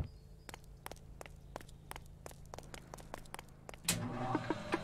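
Footsteps tread quickly across hard ground.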